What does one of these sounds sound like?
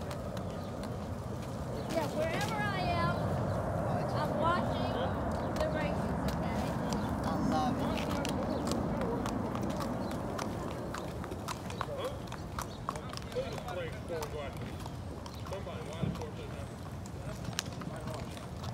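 A horse's hooves thud on packed dirt at a walk.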